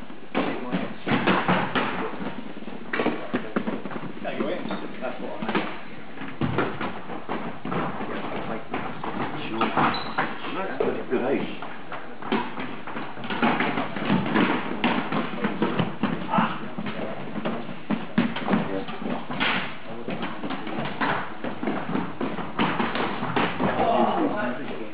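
Plastic sticks clack against a ball and the floor in a large echoing hall.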